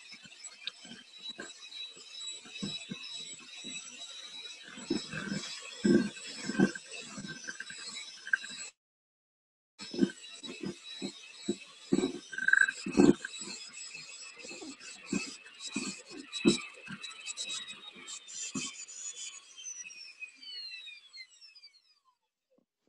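An electric hand mixer whirs steadily, then winds down.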